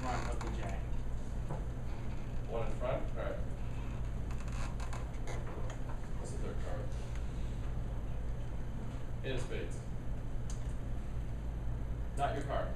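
A young man speaks calmly in short bursts nearby.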